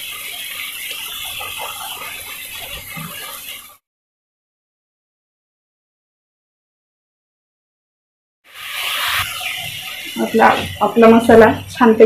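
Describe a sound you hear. Food sizzles and crackles in a hot pan.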